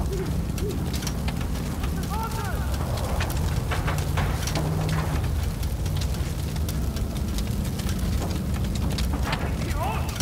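A small fire crackles nearby.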